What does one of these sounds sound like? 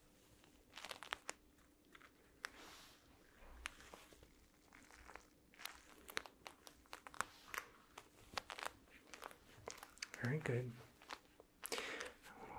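Soft pads tap lightly on a microphone.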